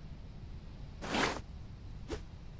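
A soft whoosh sounds.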